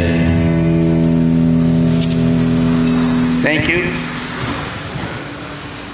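An electric guitar rings out with a sustained chord, then fades.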